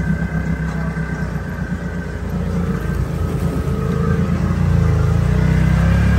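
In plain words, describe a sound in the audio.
A vehicle engine rumbles steadily and grows louder.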